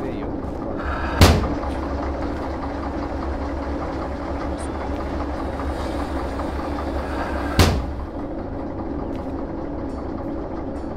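A locomotive diesel engine rumbles steadily.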